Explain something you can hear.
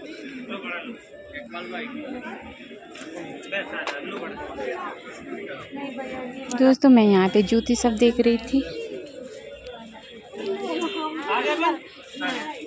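Women talk nearby.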